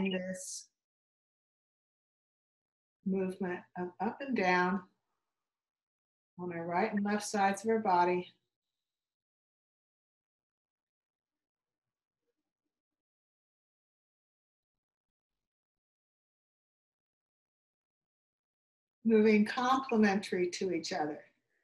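A woman speaks close by in short bursts, with long pauses.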